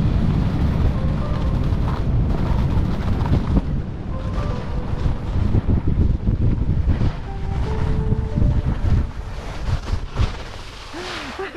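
Skis scrape and hiss over snow at speed.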